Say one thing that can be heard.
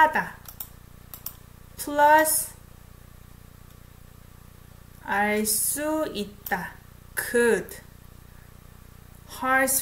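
A young woman speaks calmly and close to a microphone, in short phrases with pauses.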